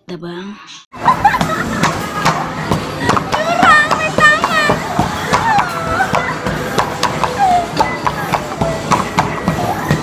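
A mallet bangs rapidly on the buttons of an arcade game.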